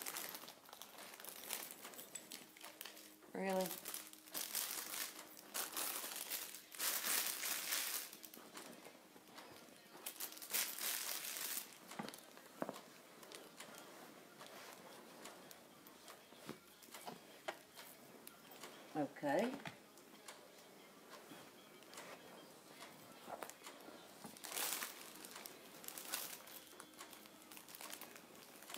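Clothing rustles and rubs close to the microphone.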